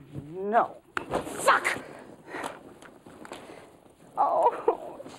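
A bag rustles as it is rummaged through.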